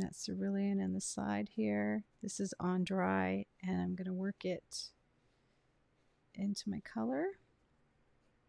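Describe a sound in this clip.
A woman speaks warmly and clearly into a close microphone.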